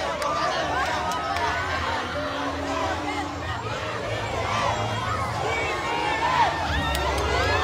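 A large crowd outdoors cheers and shouts excitedly.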